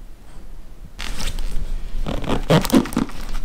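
A fabric bag rustles as it is handled.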